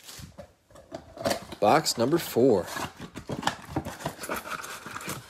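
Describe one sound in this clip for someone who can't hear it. A cardboard box flap tears open with a scraping rustle.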